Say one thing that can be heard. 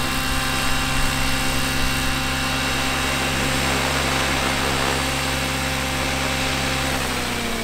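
A model helicopter's engine whines steadily close by.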